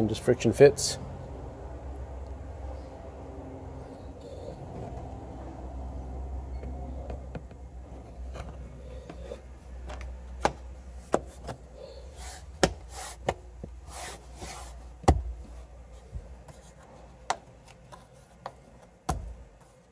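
A hand taps and knocks on plastic trim.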